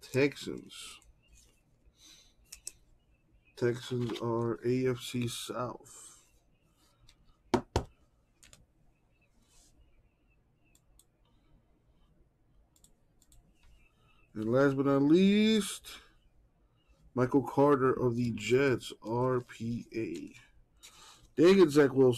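Plastic card sleeves rustle and click in hands.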